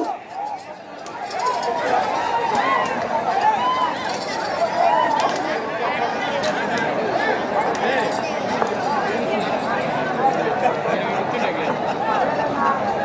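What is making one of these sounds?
A large crowd outdoors shouts and cheers loudly.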